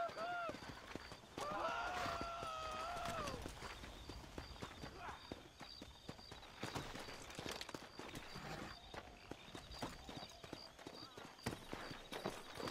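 Horse hooves clop steadily on soft ground.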